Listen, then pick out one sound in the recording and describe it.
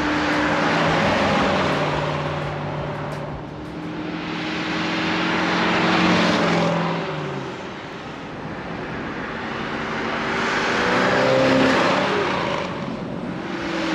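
Tyres hiss on the road as cars pass.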